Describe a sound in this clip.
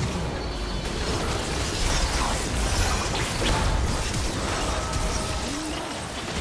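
Game spell effects whoosh, crackle and clash in a busy fight.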